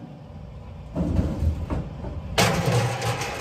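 A metal ramp clanks onto a trailer bed.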